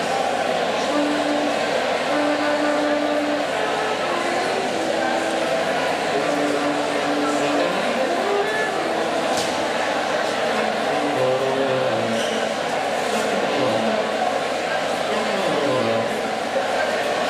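Orchestra instruments play scattered notes while tuning up.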